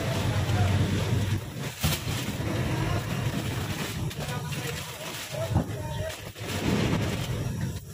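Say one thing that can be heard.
Footsteps clunk on a hollow metal floor.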